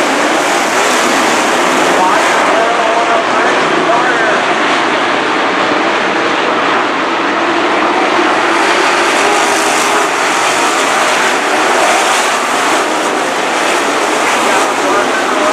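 Race car engines roar loudly.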